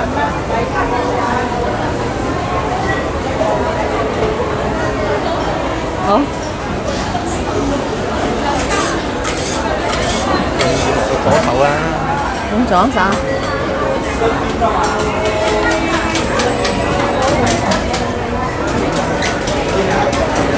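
A crowd of people chatters all around in a busy, echoing indoor hall.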